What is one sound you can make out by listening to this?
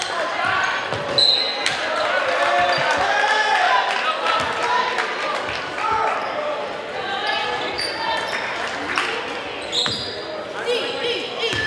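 A crowd of spectators talks and calls out, echoing in a large hall.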